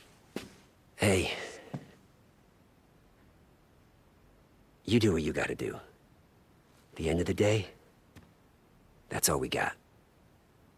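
A young man speaks calmly and close.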